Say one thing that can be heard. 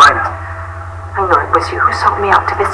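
A young woman speaks firmly and accusingly.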